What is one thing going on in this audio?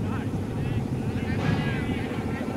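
Men shout outdoors in an appeal.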